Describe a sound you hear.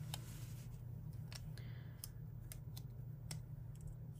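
Fingers tap and click lightly on paper.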